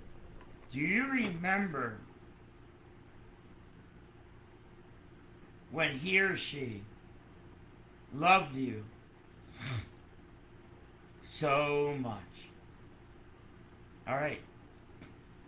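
A middle-aged man speaks calmly in short phrases with pauses, heard close through a microphone.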